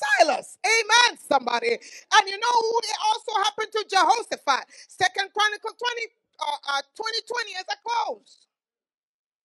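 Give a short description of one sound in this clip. A woman speaks with animation into a microphone, heard through loudspeakers.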